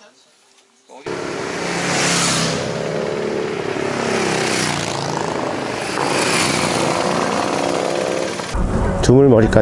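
Motorcycle engines roar past in strong wind.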